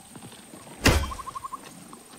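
A heavy blade strikes with a sharp thud.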